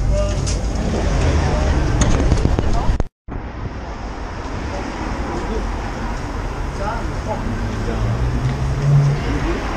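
Traffic rumbles steadily along a busy city street outdoors.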